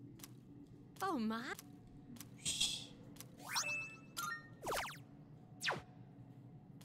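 Short electronic menu blips and chimes sound now and then.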